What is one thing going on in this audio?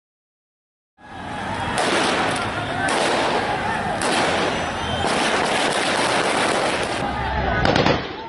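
A large crowd shouts and clamours outdoors.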